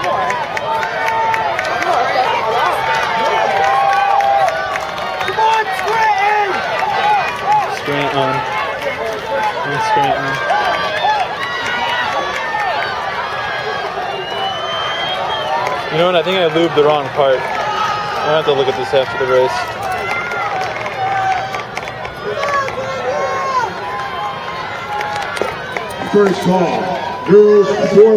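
A crowd of spectators chatters and cheers loudly nearby outdoors.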